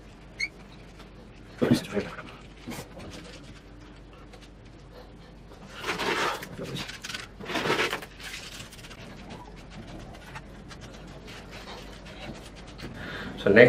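Gloved hands press and pat into loose soil.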